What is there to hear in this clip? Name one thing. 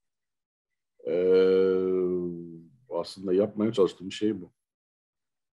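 An older man speaks calmly over an online call, drawing out a long sound before a few quick words.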